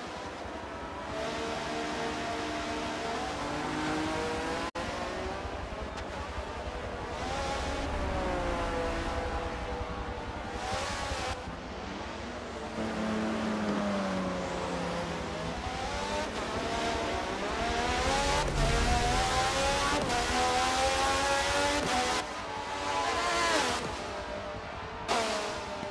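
A racing car engine screams at high revs, rising and falling in pitch as it shifts gears.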